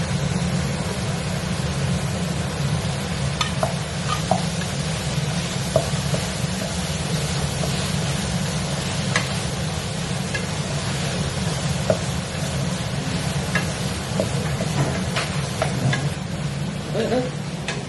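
A spatula scrapes and knocks against a pan.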